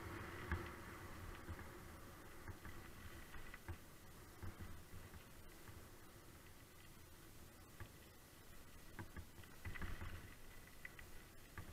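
Bicycle tyres crunch and rattle over a gravel path.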